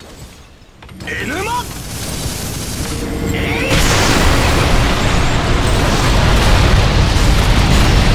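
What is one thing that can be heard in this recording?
Game spell effects crackle and blast loudly.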